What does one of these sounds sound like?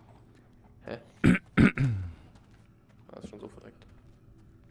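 A creature growls and snarls up close.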